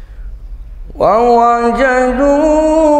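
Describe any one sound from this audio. A man chants loudly and melodiously into a microphone, echoing in a large hall.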